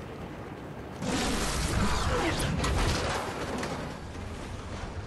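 A loud burst of rushing wind roars briefly.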